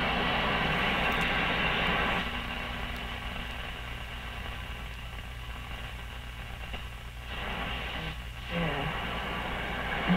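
An old radio hums steadily.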